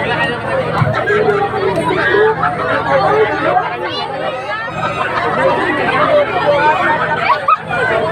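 Loud dance music with a thumping beat booms from large loudspeakers outdoors.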